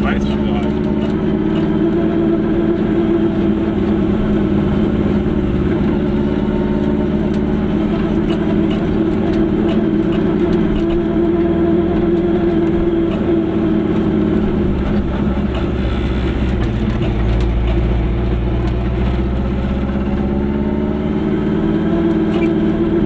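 A car engine hums steadily from inside the car, rising and falling as it drives.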